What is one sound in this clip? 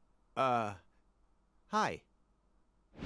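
A man says a short, hesitant greeting.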